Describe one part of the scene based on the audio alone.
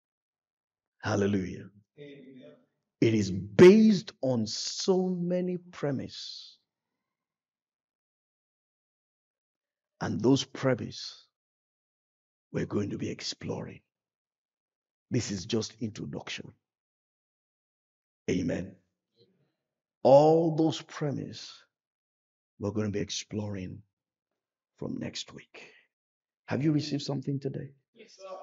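A man speaks with animation into a microphone, pausing between phrases.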